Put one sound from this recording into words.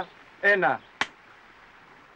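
A clapperboard snaps shut with a sharp clack.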